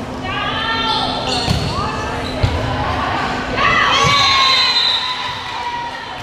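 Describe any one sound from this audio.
A volleyball is struck with a slap.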